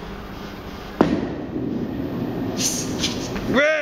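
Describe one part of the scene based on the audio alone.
A bowling ball rolls away down a lane with a low rumble.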